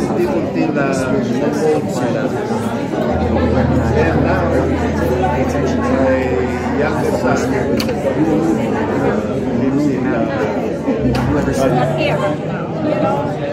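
A woman speaks calmly to a small group at close range.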